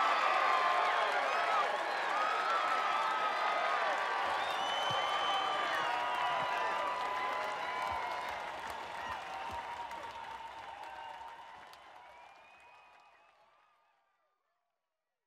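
A large crowd cheers and shouts, then fades away.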